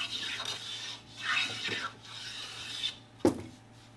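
A hand plane shaves wood in quick strokes.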